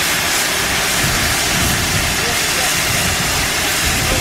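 A steam locomotive chuffs slowly as it pulls away.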